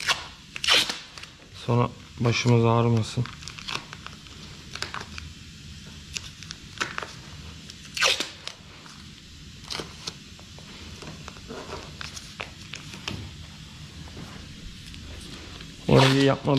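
Masking tape is pulled from a roll and torn off.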